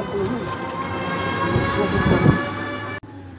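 A woman shouts loudly nearby.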